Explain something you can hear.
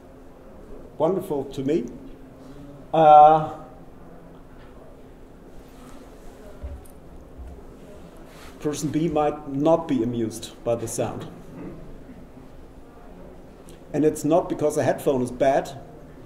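A man presents calmly into a microphone, heard through loudspeakers in a large room.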